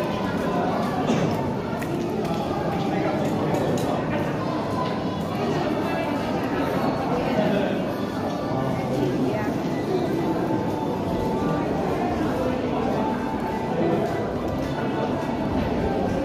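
Footsteps shuffle on a hard walkway.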